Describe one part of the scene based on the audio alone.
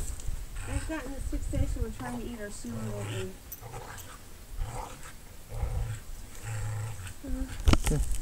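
Dogs growl while tugging at a toy.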